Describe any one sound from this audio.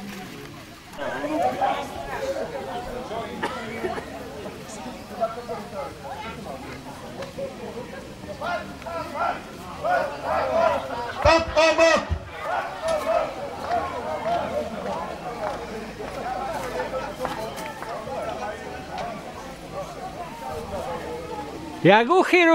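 Men talk and laugh loudly nearby.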